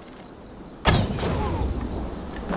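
A sudden deep whoosh bursts out.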